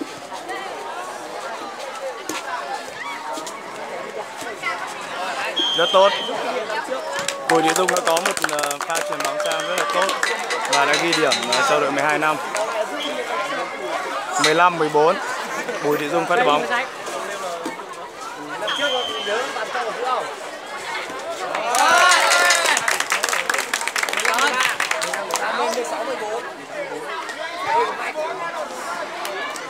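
A crowd of young people chatters and cheers outdoors.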